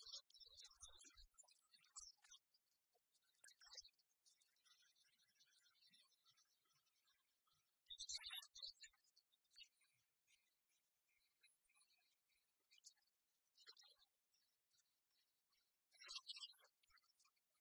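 Light, tinkling video game music plays throughout.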